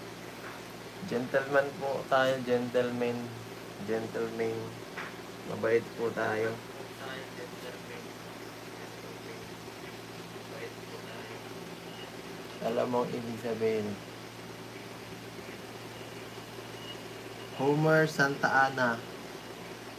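A young man talks casually, close by, in short bursts.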